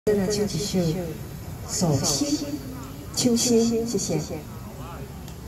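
A young woman sings into a microphone, heard through a loudspeaker outdoors.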